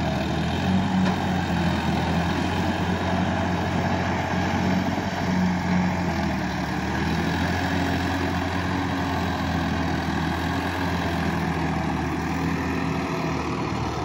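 Tractor wheels churn through deep mud.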